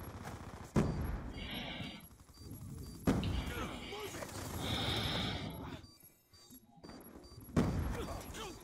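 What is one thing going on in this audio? Gunshots crack in loud bursts.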